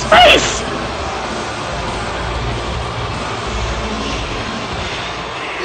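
Pyrotechnic fountains hiss and roar loudly.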